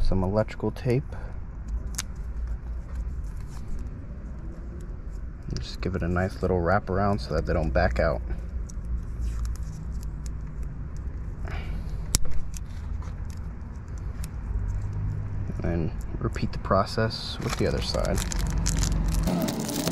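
Electrical tape peels off a roll with a sticky tearing sound.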